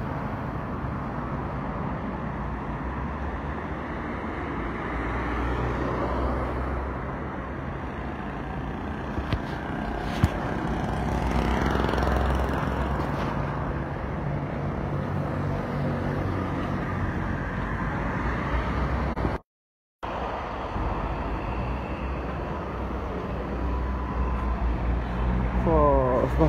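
Traffic rumbles along a city street outdoors.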